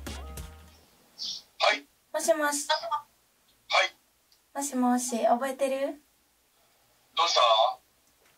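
A man answers through a phone's speaker.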